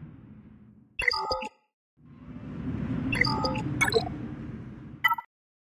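Short electronic chimes ring out as game menus change.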